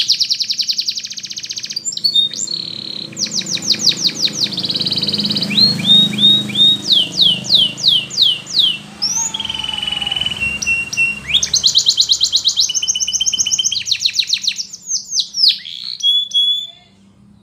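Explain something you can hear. A canary sings close by with rapid trills, chirps and whistles.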